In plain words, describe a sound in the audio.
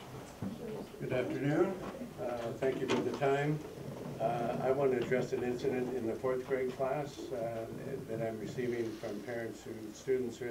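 An older man speaks calmly to a small group.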